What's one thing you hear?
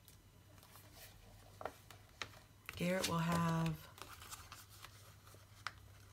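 Pages of a spiral notebook flip over.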